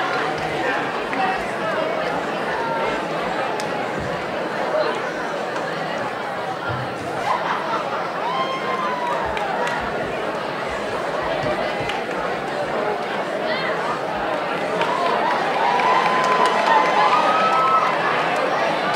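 A crowd of young people chatter in a large echoing hall.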